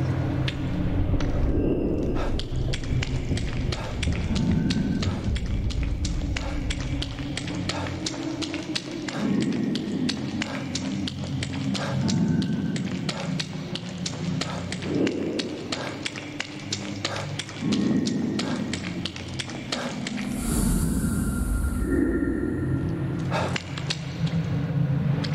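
Water splashes steadily with each step.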